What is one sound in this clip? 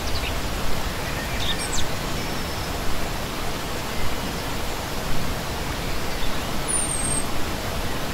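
A shallow stream rushes and splashes steadily over rocks.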